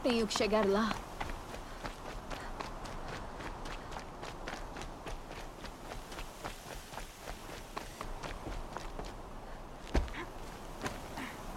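Quick footsteps run on dirt and stone.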